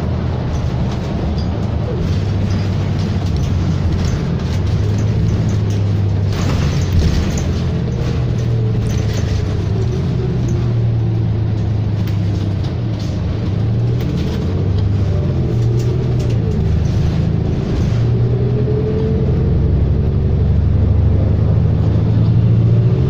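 A bus engine hums and drones steadily from inside the bus.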